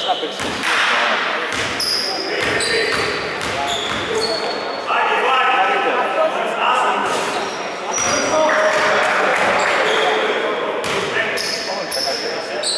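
Basketballs bounce on a wooden floor in a large echoing hall.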